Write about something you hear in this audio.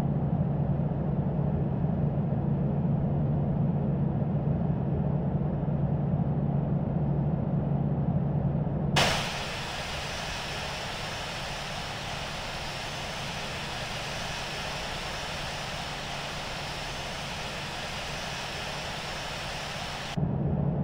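Jet engines hum and roar steadily.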